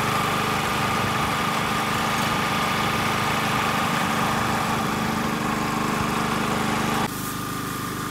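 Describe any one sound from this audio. A pump engine hums steadily nearby.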